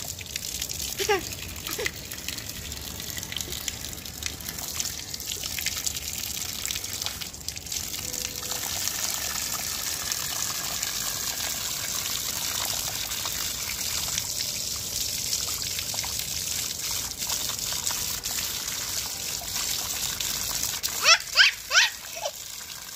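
A toddler babbles and squeals happily nearby.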